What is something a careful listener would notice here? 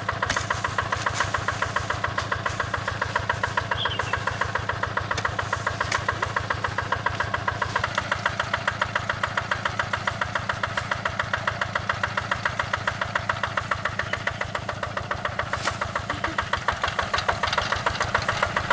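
A tractor engine chugs steadily and loudly close by.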